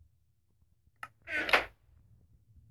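A wooden chest creaks shut.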